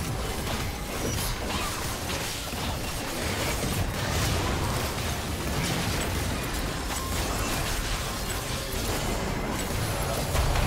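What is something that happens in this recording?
Magic spells whoosh and crackle in quick bursts.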